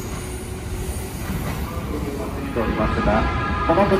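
A train hums and whines as it rolls slowly along a track.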